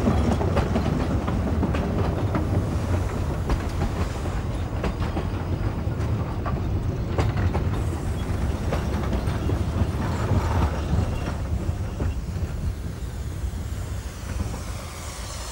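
Train carriages rumble and clatter along the rails.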